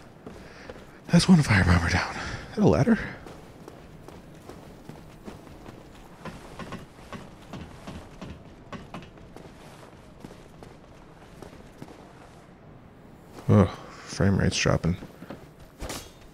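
Armoured footsteps clank on stone and wooden boards.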